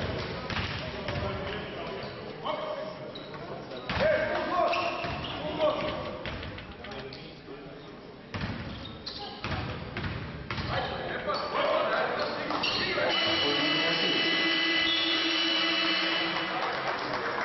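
Basketball sneakers squeak on a hard court.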